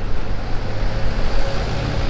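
A motorbike engine hums as it passes.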